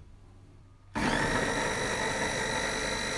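A food processor whirs steadily.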